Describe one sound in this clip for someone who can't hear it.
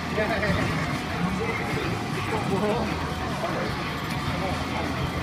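Electronic game music plays loudly.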